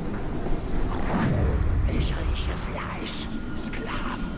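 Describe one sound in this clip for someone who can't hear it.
A ghostly shimmering whoosh rises and swells.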